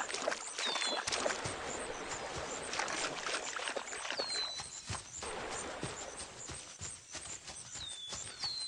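A wolf's paws patter quickly over ice and then grass.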